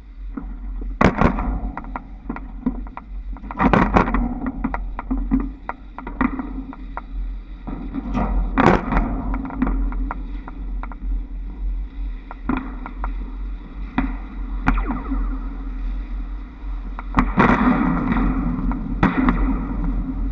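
Trolley poles clatter and clack over overhead wire junctions.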